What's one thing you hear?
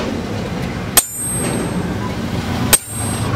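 A metal tool strikes a metal rod on an anvil with sharp clanks.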